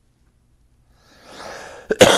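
An elderly man coughs into his hand.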